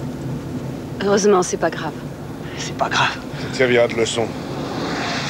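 A woman speaks tensely, close by.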